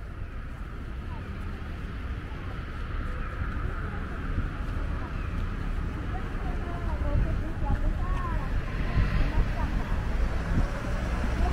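Footsteps patter on a paved sidewalk.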